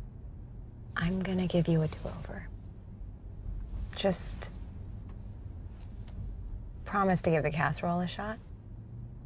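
A woman speaks calmly close by inside a car.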